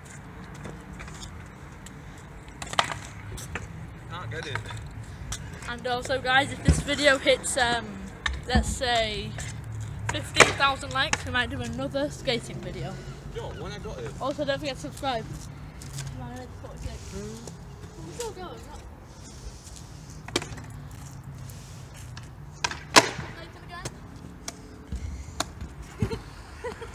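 Skateboard wheels roll and clack on concrete.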